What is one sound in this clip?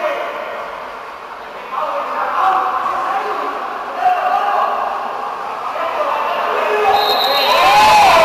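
Players splash and thrash in the water.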